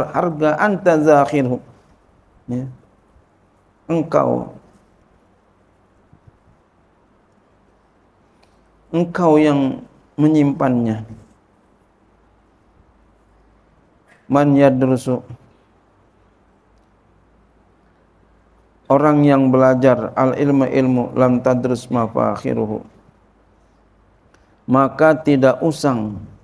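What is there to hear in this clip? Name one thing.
A middle-aged man speaks slowly and calmly into a microphone, with long pauses.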